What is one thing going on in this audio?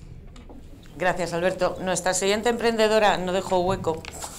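A woman speaks into a microphone, her voice carried over loudspeakers.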